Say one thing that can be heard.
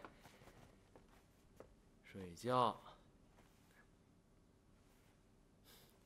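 Bedding rustles as two people lie down.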